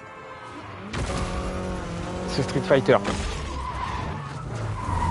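A car skids across loose sand.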